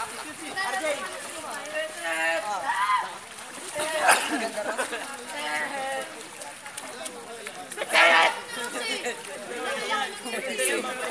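Water splashes in a pool.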